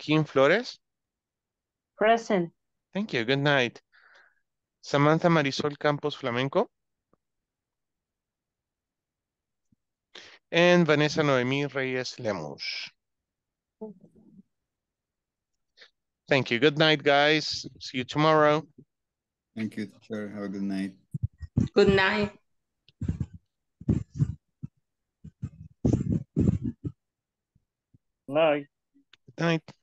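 A young man speaks animatedly through an online call.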